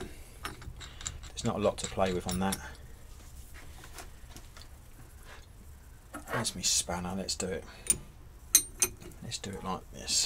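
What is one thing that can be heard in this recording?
Metal tool parts clink and tap against each other.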